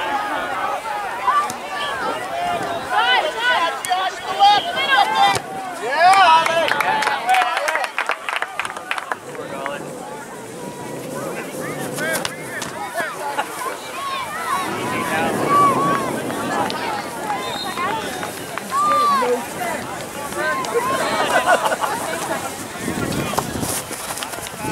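Spectators shout and cheer from the sidelines outdoors.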